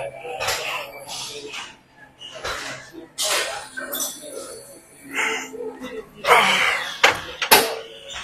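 A weight machine's plates clank and slide as they rise and fall.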